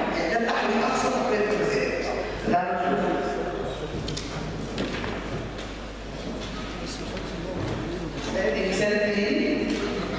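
A middle-aged woman speaks with animation into a microphone, heard through a loudspeaker.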